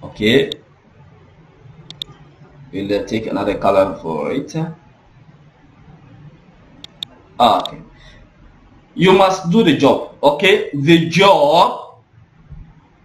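A man speaks calmly and explains through a microphone, in short phrases with pauses.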